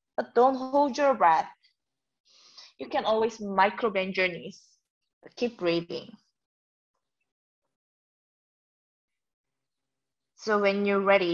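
A young woman speaks calmly and close up, in short phrases with pauses.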